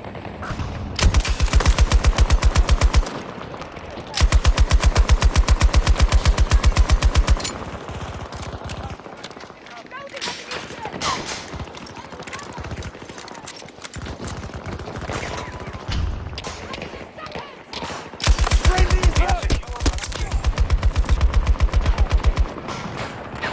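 A light machine gun fires in rapid bursts.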